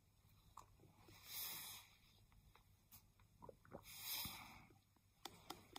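A man exhales heavily through his mouth.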